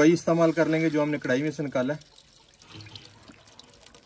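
Oil pours into a metal pot.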